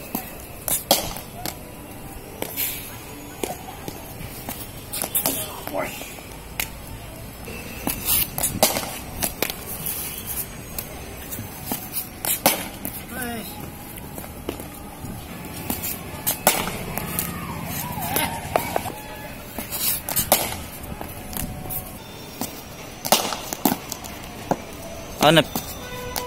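A bat strikes a ball with a sharp knock.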